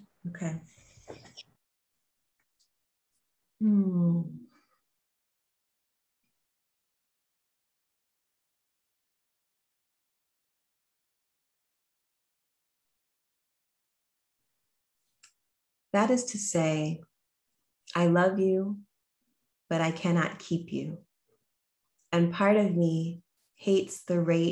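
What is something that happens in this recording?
A young woman speaks calmly into a microphone close by, with long pauses.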